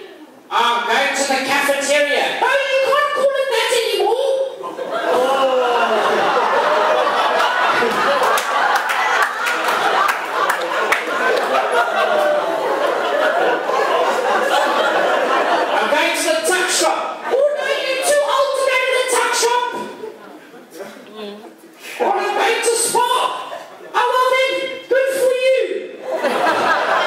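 A man speaks animatedly through a microphone in a reverberant hall.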